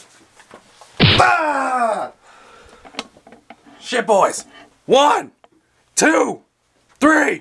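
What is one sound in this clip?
A man yells in long, drawn-out wailing cries close by.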